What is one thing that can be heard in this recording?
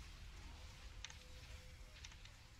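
Game hit sounds clink sharply.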